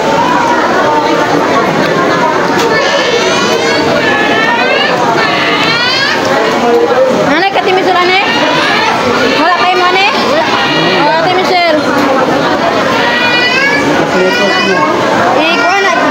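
A crowd chatters in a busy, echoing room.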